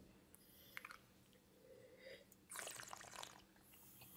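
A man sips and slurps wine.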